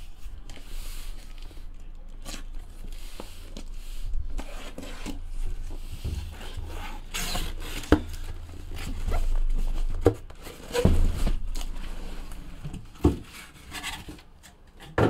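A cardboard box scrapes and rustles as it is handled and opened.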